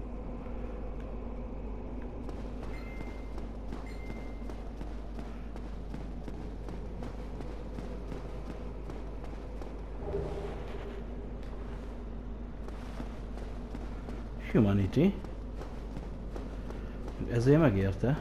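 Armoured footsteps thud and scrape on stone.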